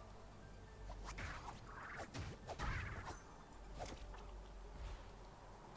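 A blade swishes in quick strikes.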